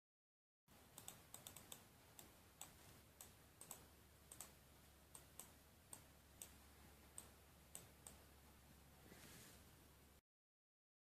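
A computer mouse clicks softly and repeatedly.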